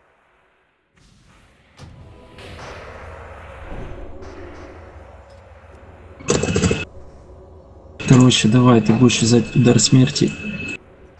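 Magic spells whoosh and crackle in a fantasy battle.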